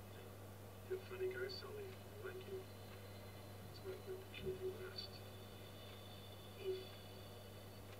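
A second man answers in a low, calm voice.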